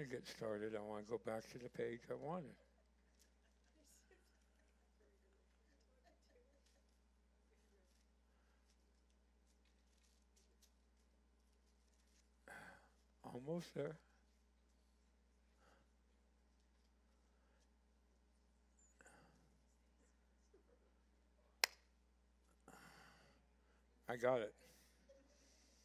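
An elderly man speaks calmly through a microphone, with long pauses.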